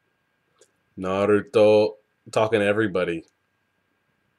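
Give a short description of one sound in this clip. A young man speaks briefly and calmly, close to a microphone.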